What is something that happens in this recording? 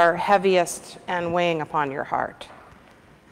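A middle-aged woman speaks calmly close by, in a room with some echo.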